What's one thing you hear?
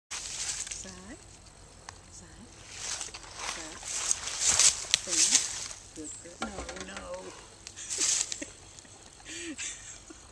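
A horse's hooves crunch and rustle through dry leaves.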